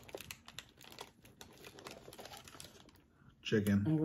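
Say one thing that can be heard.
A paper wrapper crinkles and rustles.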